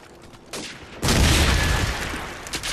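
Gunfire bursts loudly and close by.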